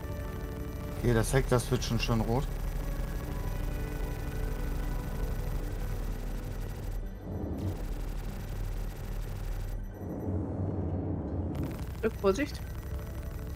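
Laser cannons fire in quick bursts.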